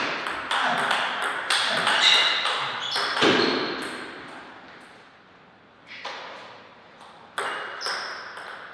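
A table tennis ball clicks sharply back and forth off paddles and a table.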